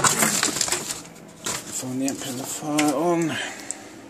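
Plastic sheeting rustles close by.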